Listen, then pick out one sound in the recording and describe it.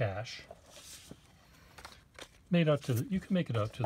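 Stiff paper cards rustle softly as they are flipped.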